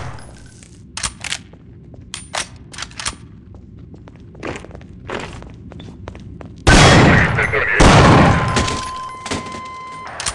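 Footsteps clank on metal stairs.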